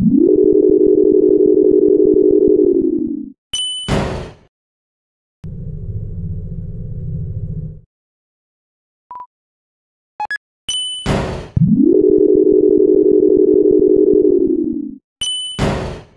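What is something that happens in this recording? A game elevator hums steadily, then slows to a stop.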